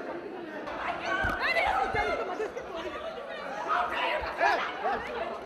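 A crowd of women and men talk and shout over one another.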